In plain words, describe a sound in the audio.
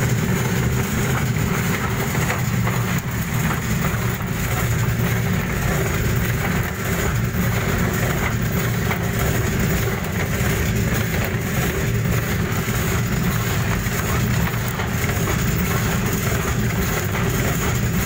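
A screw conveyor hums loudly and steadily as it turns.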